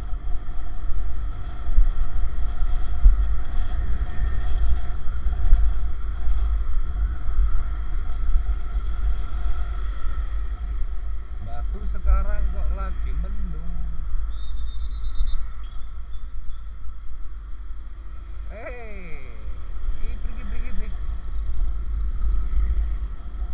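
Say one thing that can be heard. Wind rumbles steadily against a moving vehicle.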